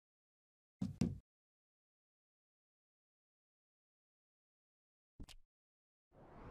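A soft menu click sounds twice.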